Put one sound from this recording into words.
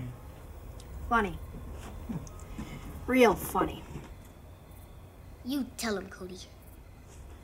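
A boy speaks nearby.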